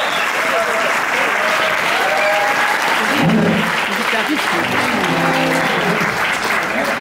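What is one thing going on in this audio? A large audience applauds loudly.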